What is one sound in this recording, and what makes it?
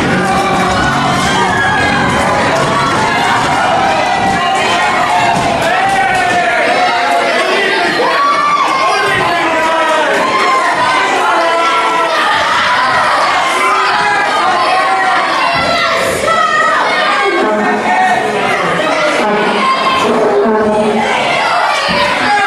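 A crowd in an echoing hall cheers and shouts.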